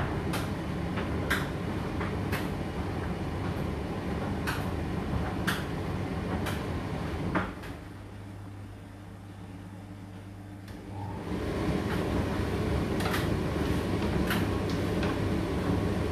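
Hard bits of laundry knock against the drum of a tumble dryer.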